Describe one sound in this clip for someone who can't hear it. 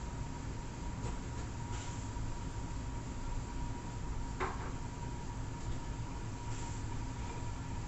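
Short electronic menu beeps sound as options are chosen.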